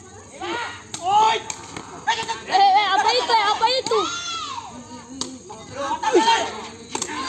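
A ball is kicked with sharp thuds.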